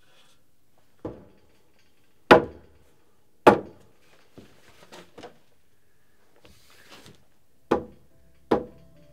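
A hammer strikes wood in loud, sharp blows, heard outdoors.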